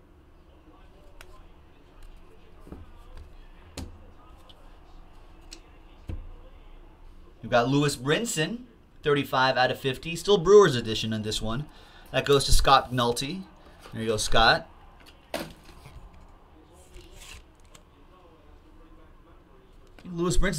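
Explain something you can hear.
Plastic card sleeves rustle and crinkle in hands.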